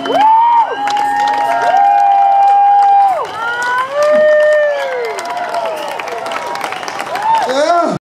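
Drums and cymbals are played.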